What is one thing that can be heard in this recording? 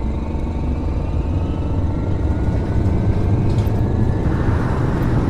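A bus engine whines, rising in pitch as it speeds up.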